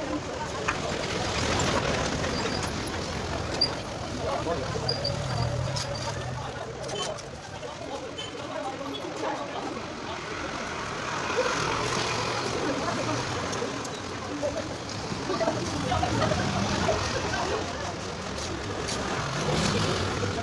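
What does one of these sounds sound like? Motorbikes ride past on a street.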